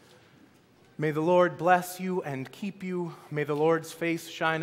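A man speaks loudly with animation through a microphone in an echoing hall.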